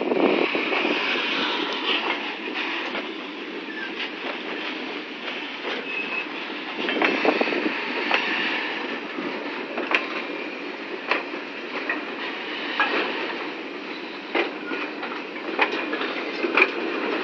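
Train wheels clack and squeal over the rail joints.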